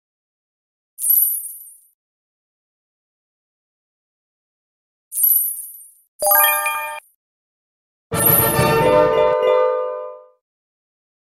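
Bright game chimes ring out in short bursts.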